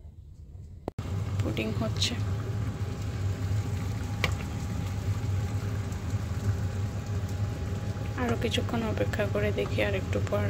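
Water simmers steadily in a pot.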